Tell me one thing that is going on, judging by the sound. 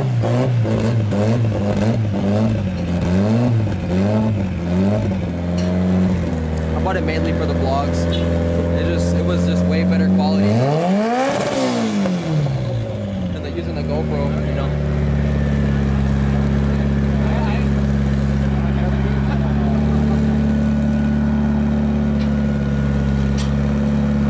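A car engine idles with a steady, deep rumble.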